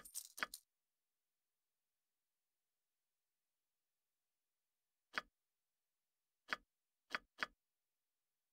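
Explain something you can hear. Short interface clicks sound as game menu items are selected.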